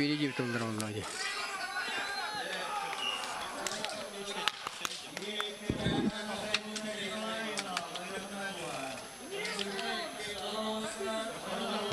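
A crowd murmurs and chatters in a large open arena.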